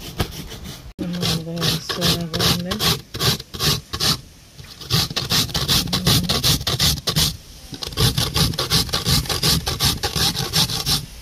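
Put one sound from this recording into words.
Coconut is grated by hand on a metal grater with quick, rhythmic scraping strokes.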